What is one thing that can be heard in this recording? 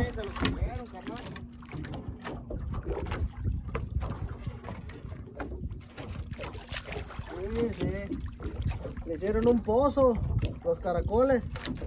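Wind rumbles across the open water.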